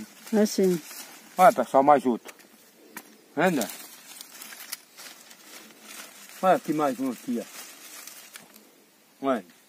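Leaves rustle as a man handles a bush.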